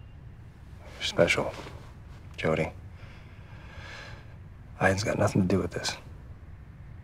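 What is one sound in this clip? A young man speaks quietly and warmly, close by.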